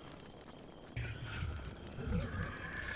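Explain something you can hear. A creature grunts and growls close by.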